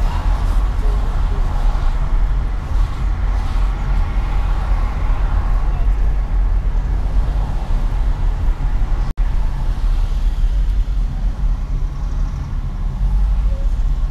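A car's engine hums steadily as it drives along a highway.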